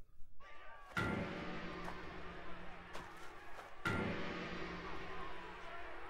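A large gong is struck twice and rings out.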